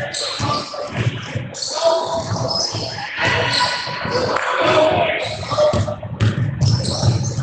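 Sneakers squeak on a hard court floor in a large echoing gym.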